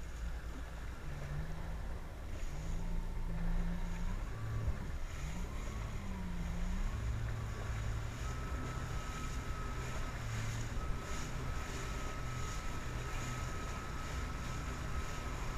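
Wind buffets a microphone.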